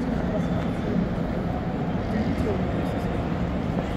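Suitcase wheels roll along the floor.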